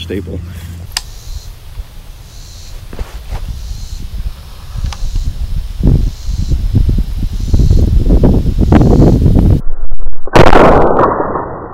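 A rifle fires a sharp shot outdoors.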